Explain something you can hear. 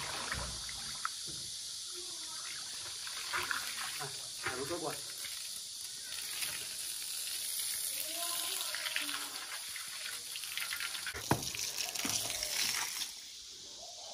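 Water gushes from a hose and splashes onto the ground.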